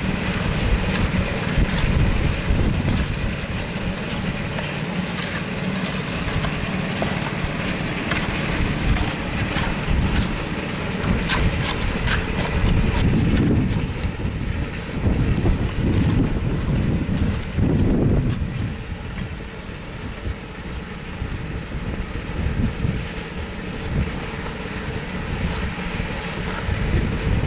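A shovel scrapes and pats wet concrete.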